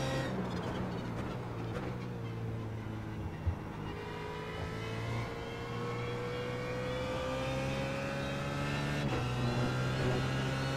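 A racing car engine drones steadily, its pitch rising and falling as it speeds up and shifts gear.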